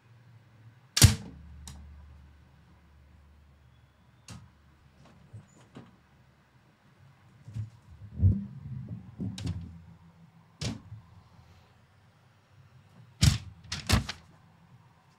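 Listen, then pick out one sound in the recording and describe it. Paper crinkles and rustles against a microphone up close.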